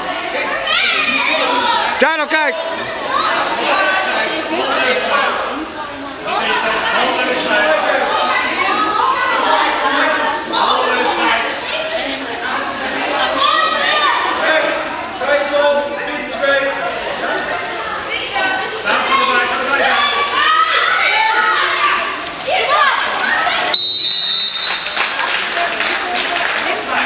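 Water splashes as swimmers churn through a pool.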